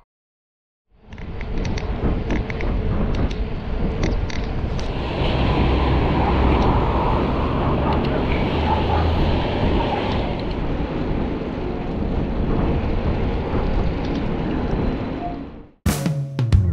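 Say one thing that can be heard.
Bicycle tyres hiss on a wet road.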